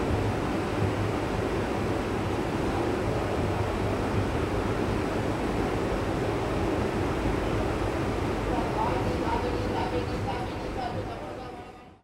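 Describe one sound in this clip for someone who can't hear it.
A train rumbles steadily along the tracks, fading out at the end.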